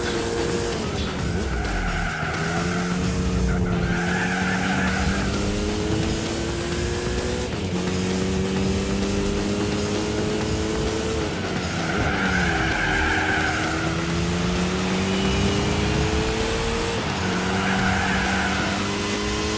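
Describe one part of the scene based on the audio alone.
Tyres squeal through corners.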